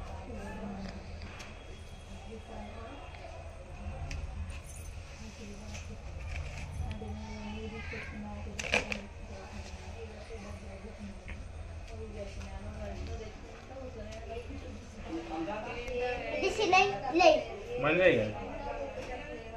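A knife scrapes and slices through soft fruit skin.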